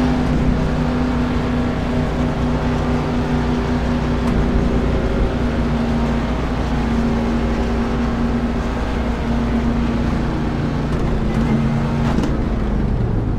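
A race car engine hums steadily at low speed, then cuts out.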